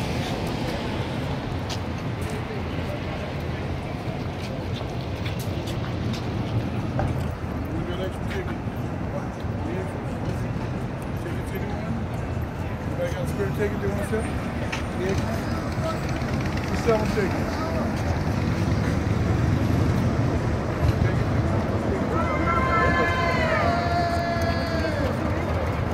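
Traffic rumbles steadily along a busy street.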